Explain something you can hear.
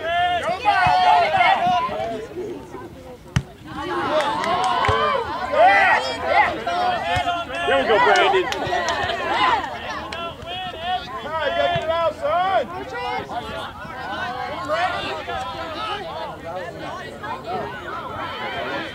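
Young men shout to one another across an open field outdoors.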